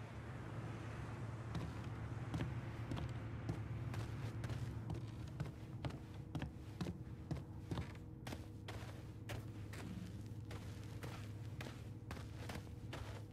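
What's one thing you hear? Footsteps thud steadily on a hard floor indoors.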